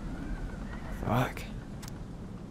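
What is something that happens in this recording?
Paper rustles as a note is picked up.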